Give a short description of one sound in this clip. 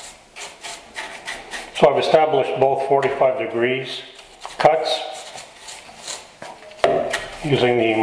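A brush sweeps dust off wood.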